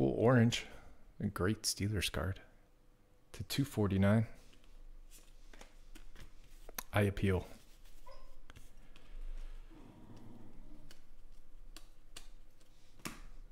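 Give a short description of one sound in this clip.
Trading cards rustle and flick as they are shuffled through by hand.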